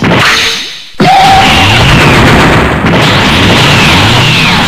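A power-up aura crackles and roars.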